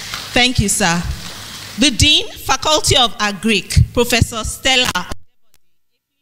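A woman speaks steadily into a microphone, heard through loudspeakers in a large room.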